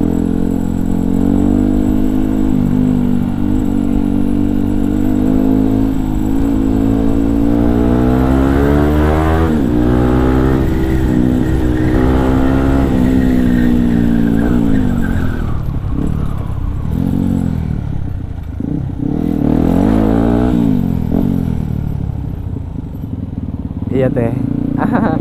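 A motorcycle engine hums and revs close by, rising and falling in pitch as it speeds up and slows down.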